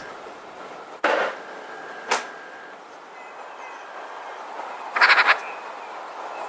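Magpies chatter nearby.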